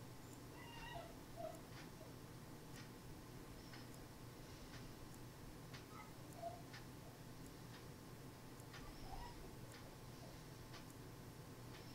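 Soft, quick clicks tick over and over.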